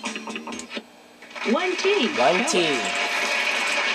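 A game board chimes as a letter is revealed.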